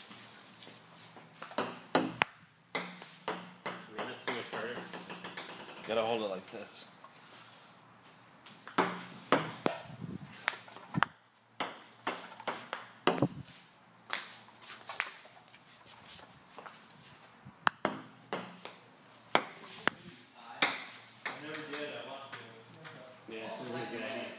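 A ping-pong ball clicks sharply on a table and paddles.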